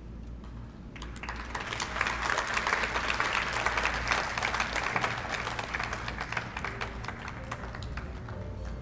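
A small group of people applauds in a large echoing hall.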